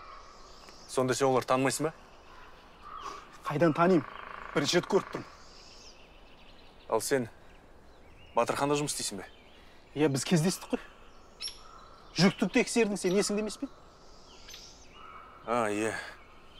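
A young man speaks in a firm, raised voice nearby.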